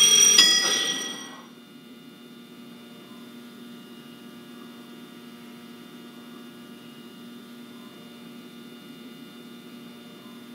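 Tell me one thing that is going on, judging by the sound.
A stopped train idles with a steady electric hum.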